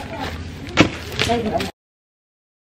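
Plastic bubble wrap rustles and crinkles in hands.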